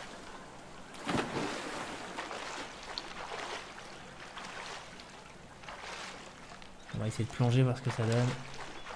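Water splashes as a small figure wades through it.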